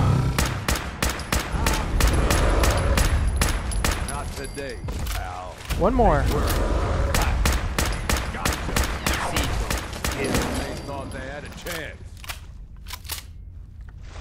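A rifle fires in rapid bursts of shots.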